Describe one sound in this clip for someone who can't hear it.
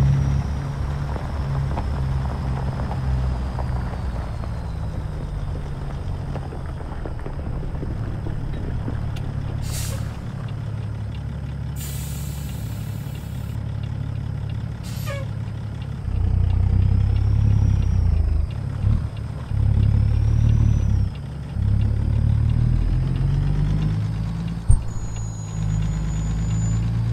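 A diesel semi truck engine rumbles as it drives.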